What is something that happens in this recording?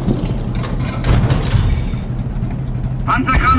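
A distant explosion booms.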